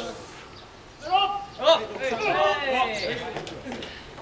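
A young man calls out loudly outdoors, close by.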